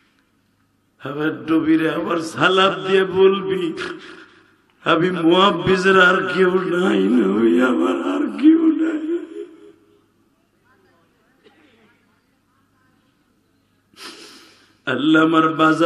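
A man chants in a long, drawn-out melodic voice through a loud microphone, pausing between phrases.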